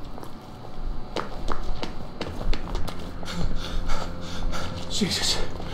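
Footsteps tap steadily on a stone street.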